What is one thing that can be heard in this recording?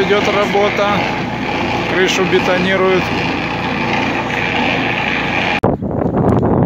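A cement mixer churns with a steady mechanical rumble.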